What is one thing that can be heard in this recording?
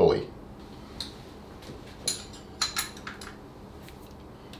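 A wrench clinks and clicks against metal.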